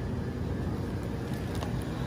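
A plastic bag crinkles as a hand squeezes it.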